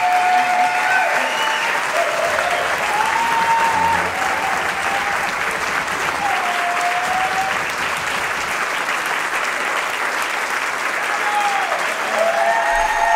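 A large crowd cheers and applauds loudly in a big hall.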